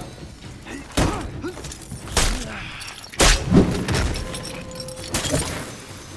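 Swords clash and strike with heavy metallic hits.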